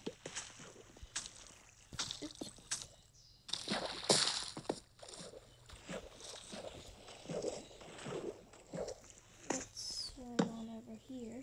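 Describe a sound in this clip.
Stone blocks knock dully as they are placed and broken.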